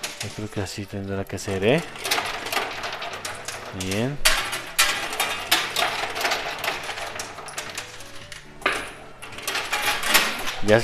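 Metal coins clink and clatter as a machine's pusher shoves them along.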